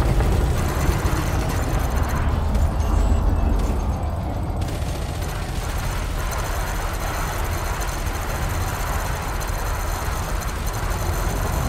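A spaceship's engines roar with a deep steady rumble.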